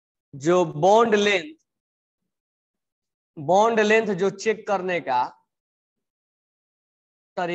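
A young man speaks calmly and clearly close by.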